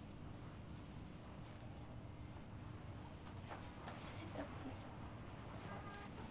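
Hands rub and pat on skin.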